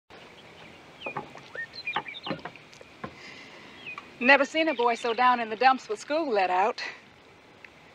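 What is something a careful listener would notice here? Water trickles from a watering can.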